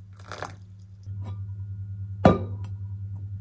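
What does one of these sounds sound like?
A plastic lid knocks onto a cup.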